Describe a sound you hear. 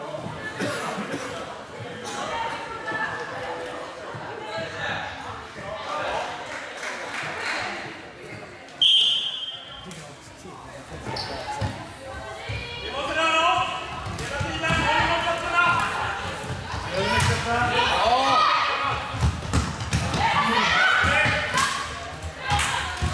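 Players call out and shout across a large echoing hall.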